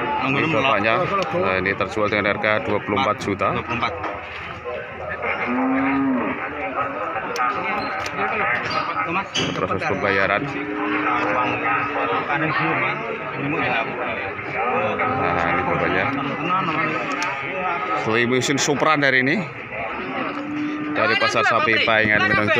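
Several men talk with animation close by, outdoors.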